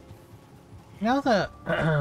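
A man speaks into a headset microphone.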